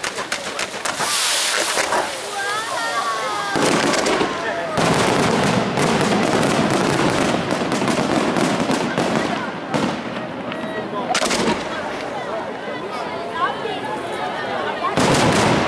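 Fireworks boom loudly.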